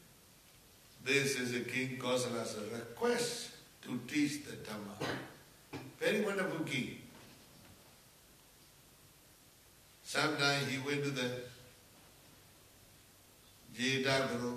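An elderly man speaks slowly and calmly into a microphone, pausing between phrases.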